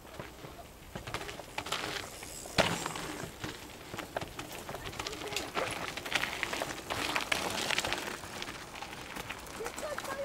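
Bicycle tyres crunch over a dirt track.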